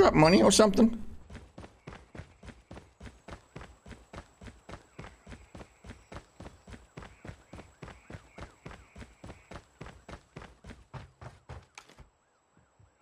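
Footsteps run quickly and steadily on a hard floor.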